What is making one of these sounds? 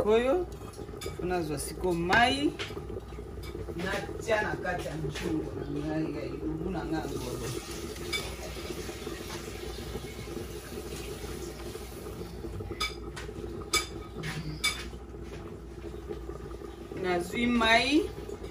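A wooden spoon scrapes and stirs food in a metal pot.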